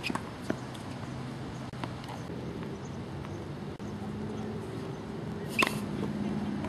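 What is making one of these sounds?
A tennis ball is struck by a racket with a sharp pop.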